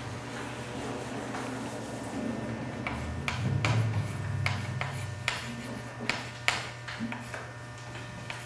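Chalk taps and scrapes on a slate.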